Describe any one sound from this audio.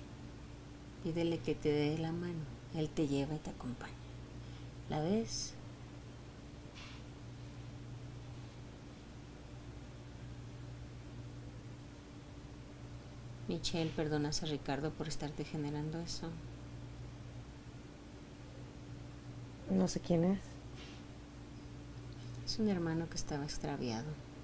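A woman speaks softly and slowly close by, in short phrases.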